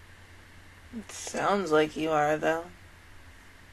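A young woman speaks briefly and expressively, close to a microphone.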